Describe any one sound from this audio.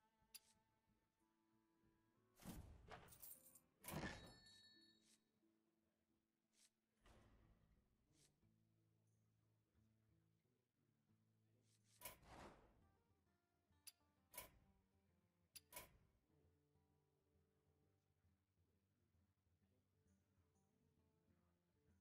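Soft game music plays throughout.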